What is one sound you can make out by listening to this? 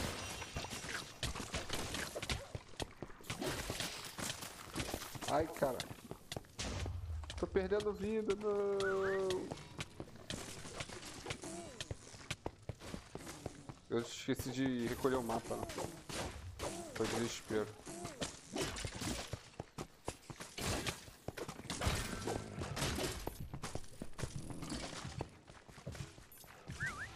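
Sword blows strike and clatter in quick bursts.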